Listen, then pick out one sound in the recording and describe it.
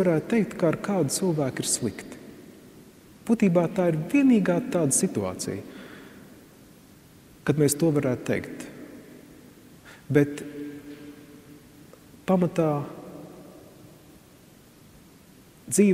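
A middle-aged man speaks calmly through a microphone, with pauses, echoing in a large hall.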